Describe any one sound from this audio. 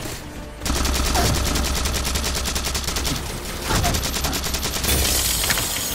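A rapid-fire energy weapon fires in rapid bursts.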